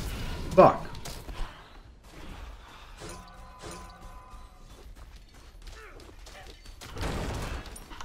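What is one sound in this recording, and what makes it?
Game weapons clash and strike in a fight.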